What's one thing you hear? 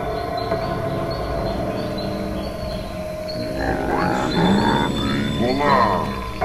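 Electronic synthesized music plays, with tones that glide up and down in pitch.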